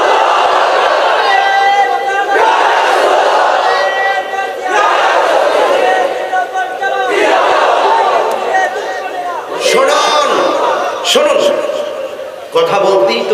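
A young man preaches loudly and with passion into microphones, his voice echoing through loudspeakers outdoors.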